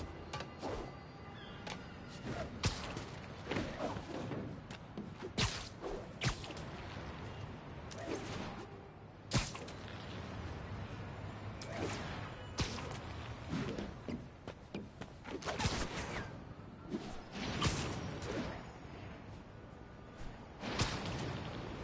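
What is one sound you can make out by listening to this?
Wind rushes past while swinging through the air.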